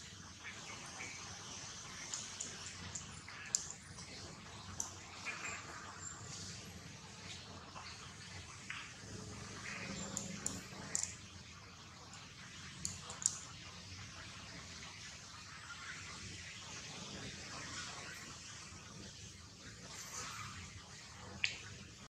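Monkeys shift and rustle softly on dry leaves.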